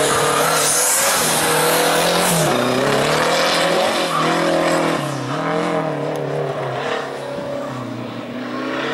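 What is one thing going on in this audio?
Tyres squeal on tarmac as a car turns sharply.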